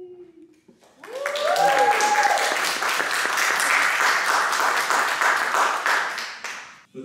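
A small group of people applaud and cheer.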